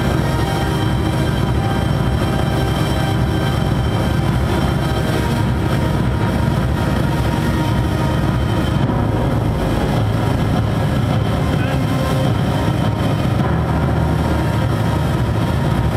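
Heavy bass throbs steadily through loudspeakers.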